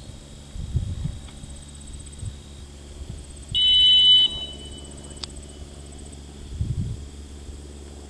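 Wind gusts briefly outdoors.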